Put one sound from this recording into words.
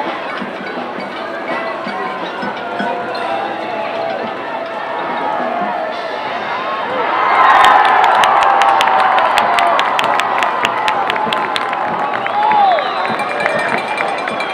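A large outdoor crowd cheers and shouts, swelling loudly midway.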